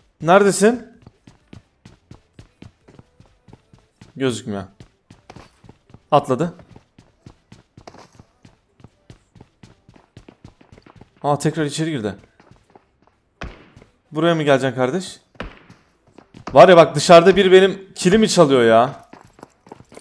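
A man speaks with animation in short bursts, close to a microphone.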